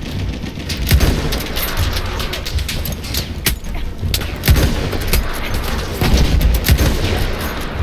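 Gunshots crack sharply again and again.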